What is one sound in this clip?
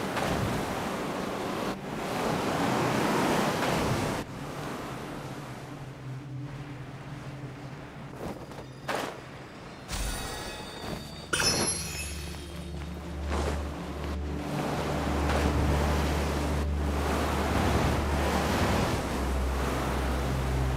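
Wind rushes past while gliding through the air.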